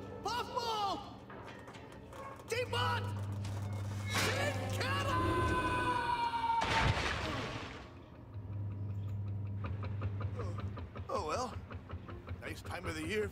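A man exclaims in alarm.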